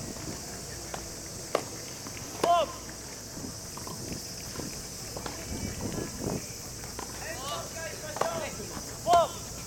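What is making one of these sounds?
A tennis ball is struck with a racket outdoors.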